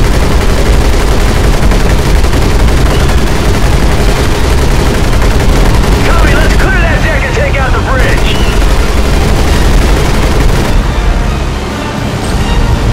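An aircraft engine drones loudly and steadily.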